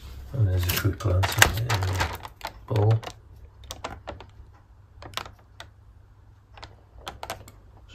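A plastic food tray crackles and crinkles as it is handled.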